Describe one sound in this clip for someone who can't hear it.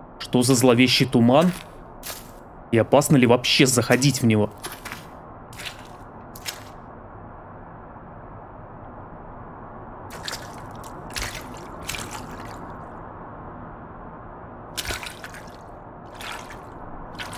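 Water rushes steadily somewhere in the distance.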